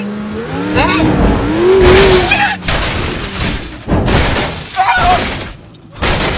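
A car crashes and tumbles over grass with loud thuds.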